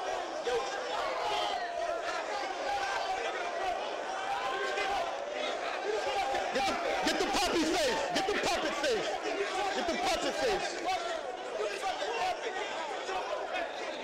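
A young man in the crowd laughs loudly.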